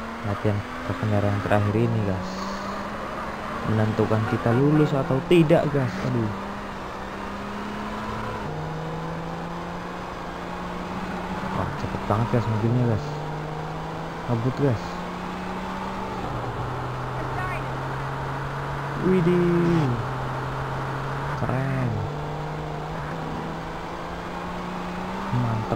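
A car engine hums steadily, dropping in pitch with each gear change.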